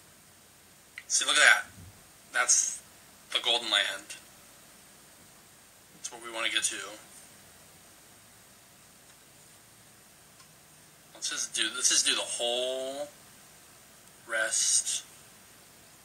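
A man speaks in short, playful bursts close to a microphone.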